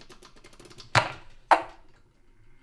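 Sharp knocks sound as a gramophone is handled.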